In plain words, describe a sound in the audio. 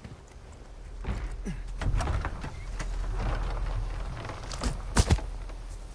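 A heavy wooden door creaks and swings open.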